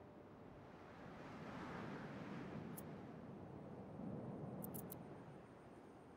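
Sea waves wash softly and steadily.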